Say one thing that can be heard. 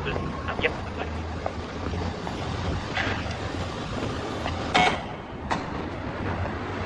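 Footsteps tap on a stone pavement outdoors.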